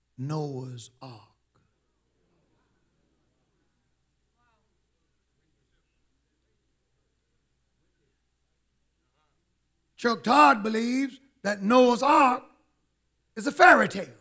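An older man preaches with animation into a microphone, pausing between phrases.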